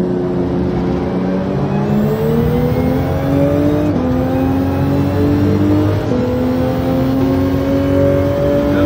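A racing car engine revs high, rising in pitch and dropping briefly at each gear change.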